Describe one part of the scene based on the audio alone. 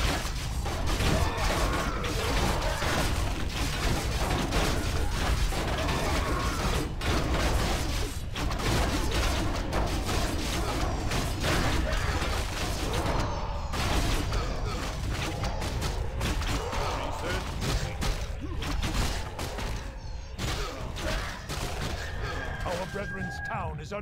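Game battle sounds clash with weapon hits and spell blasts.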